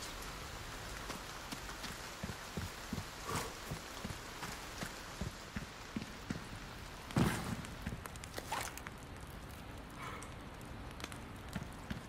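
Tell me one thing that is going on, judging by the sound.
Footsteps crunch slowly on rough ground.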